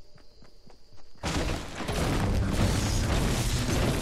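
A pickaxe chops against a tree trunk.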